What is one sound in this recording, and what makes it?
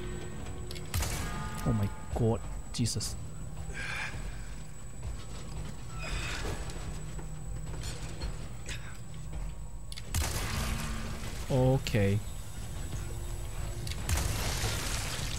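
Gunshots ring out in a video game.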